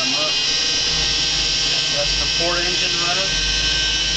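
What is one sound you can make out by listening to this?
A boat engine starts and idles with a low, steady rumble.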